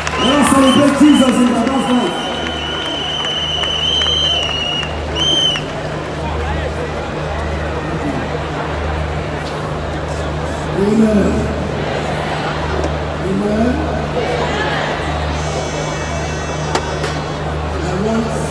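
A man speaks into a microphone, heard through loudspeakers in a large open space.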